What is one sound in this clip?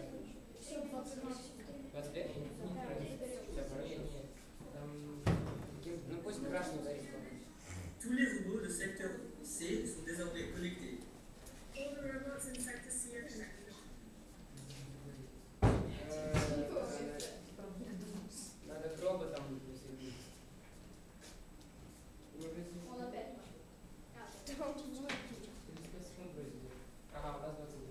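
Young boys talk and chatter close by.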